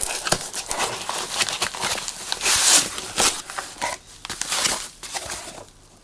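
Plastic foam packing crinkles as hands pull it out.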